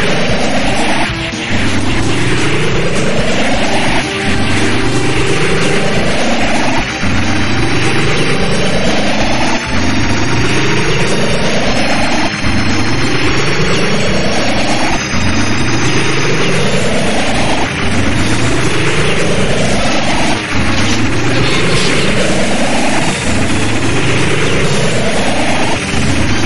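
An electric hum rises in pitch over and over, in even cycles.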